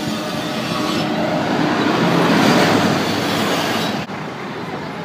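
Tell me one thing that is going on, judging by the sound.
A car drives past close by with a rushing whoosh.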